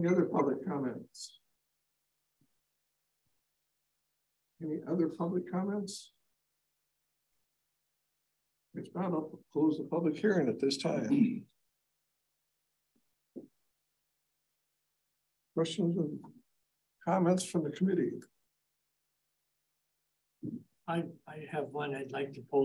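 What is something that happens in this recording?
An adult man speaks calmly into a microphone in a room, in short phrases with pauses.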